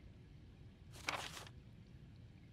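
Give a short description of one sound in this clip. A soft interface chime sounds as a page turns.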